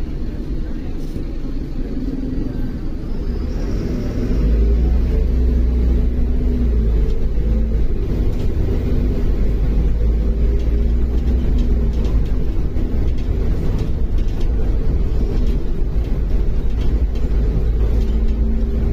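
A bus body rattles and creaks over the road.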